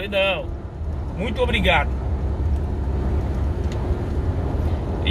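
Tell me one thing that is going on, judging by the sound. A car engine rumbles low and steady from inside the cab.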